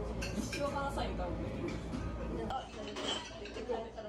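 A stiff menu is opened with a soft rustle.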